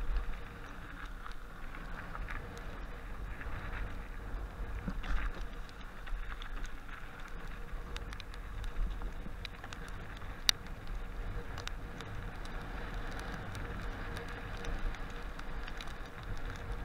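Bicycle tyres crunch over snow and rattle on a bumpy trail.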